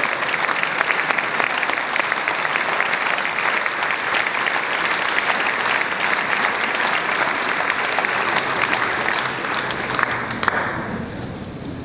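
A crowd applauds loudly in a large hall.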